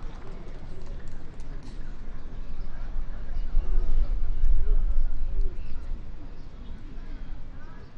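Players call out faintly across an open outdoor field.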